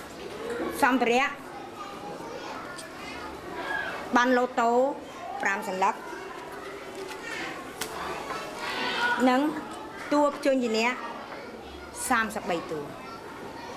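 Children chatter in the background.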